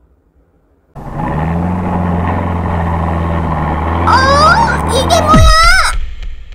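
A toy car's engine rumbles as it drives over sand.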